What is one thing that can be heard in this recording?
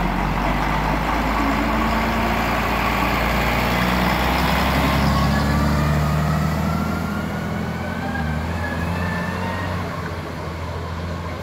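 A bus engine rumbles loudly close by as the bus pulls away.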